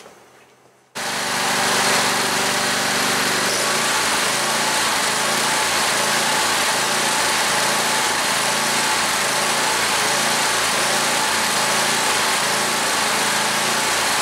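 A small engine idles with a steady, rough chugging.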